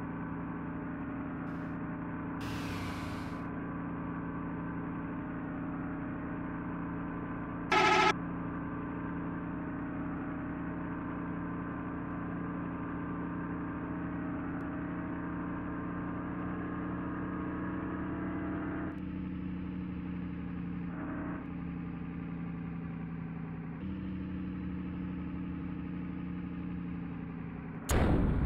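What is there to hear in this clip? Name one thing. A diesel bus engine drones while cruising at speed.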